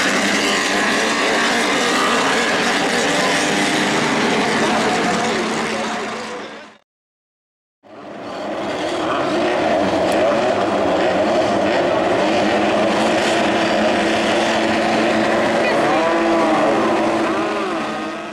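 Racing car engines roar loudly as they speed around a dirt track.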